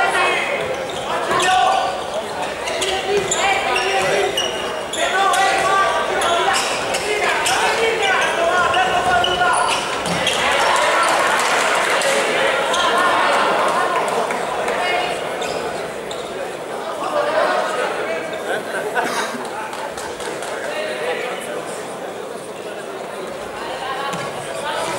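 A ball is kicked on a hard indoor court.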